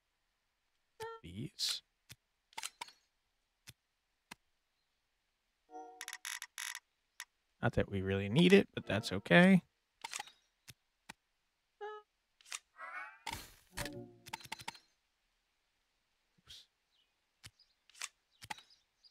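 Short soft clicks of a game's menus sound now and then.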